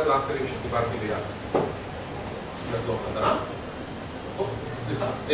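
A man speaks calmly through a microphone in a room with some echo.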